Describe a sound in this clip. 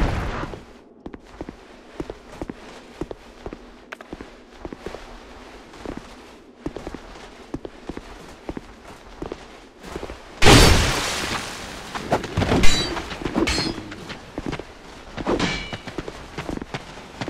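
Armoured footsteps clank on stone steps.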